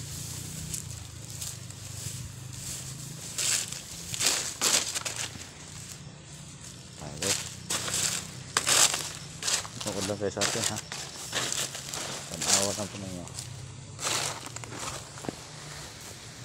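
Leaves rustle and brush close by.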